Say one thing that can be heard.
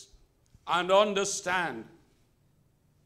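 A man preaches emphatically into a microphone.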